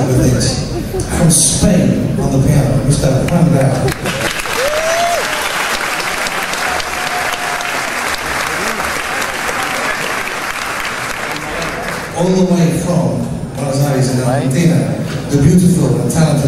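A live band plays rock music with drums, electric guitars and saxophone in a large echoing space.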